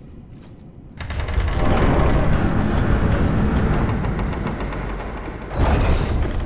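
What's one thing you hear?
A heavy wooden door creaks and grinds open, echoing.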